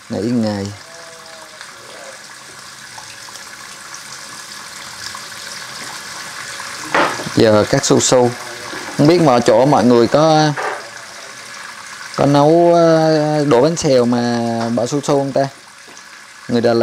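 Tap water runs into a sink.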